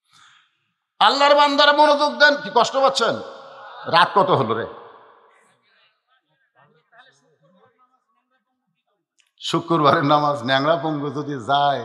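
An elderly man preaches with fervour into a microphone, in bursts separated by pauses.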